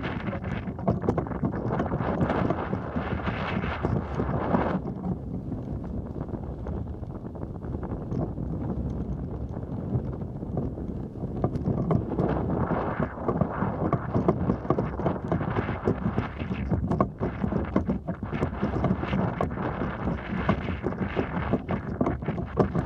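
Wind blows hard across the microphone outdoors, gusting up and down.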